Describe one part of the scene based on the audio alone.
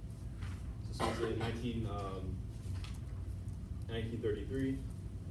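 A young man speaks calmly in a room with some echo.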